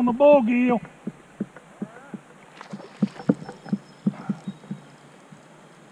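A fishing reel clicks as line is reeled in.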